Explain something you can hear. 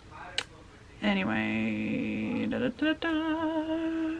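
A woman speaks close by, with animation.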